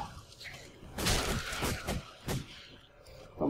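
Fire spells whoosh and crackle.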